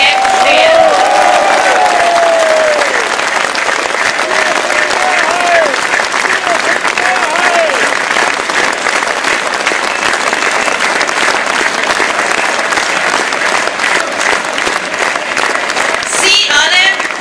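A large crowd claps.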